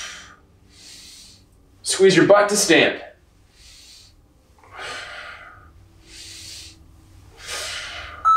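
A man breathes out hard in short bursts.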